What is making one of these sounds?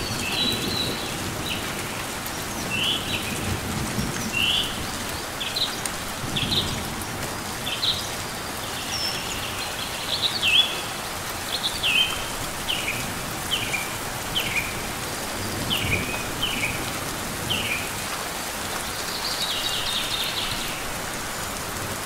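A small bird chirps in short, high, sharp notes again and again.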